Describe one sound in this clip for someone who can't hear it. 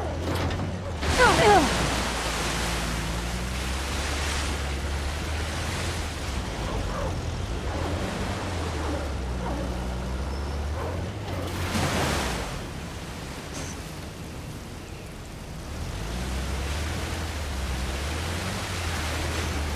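Water splashes and sprays around a vehicle.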